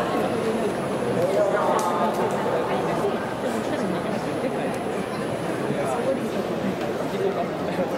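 A crowd of people murmurs and chatters in a large, open space.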